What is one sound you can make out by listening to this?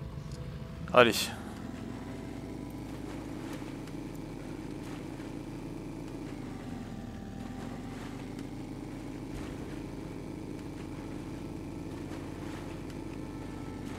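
Waves splash against a boat's hull.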